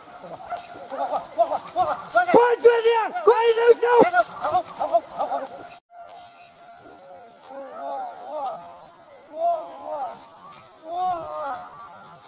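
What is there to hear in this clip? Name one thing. Dogs bark and yelp excitedly outdoors.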